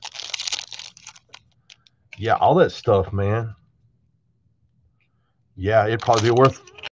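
A foil card pack crinkles and tears open.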